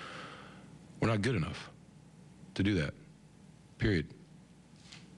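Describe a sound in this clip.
A middle-aged man speaks calmly into a microphone in short bursts.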